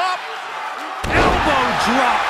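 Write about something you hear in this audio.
A body slams heavily onto a ring mat.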